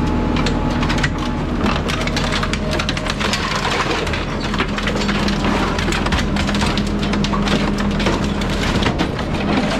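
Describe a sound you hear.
Scrap metal crunches, scrapes and clatters as it is crushed.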